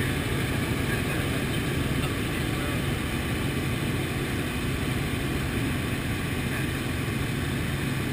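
A helicopter's engine and rotor roar steadily from inside the cabin.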